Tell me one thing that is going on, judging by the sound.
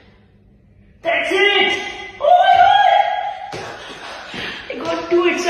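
A young woman shouts and laughs excitedly, close by.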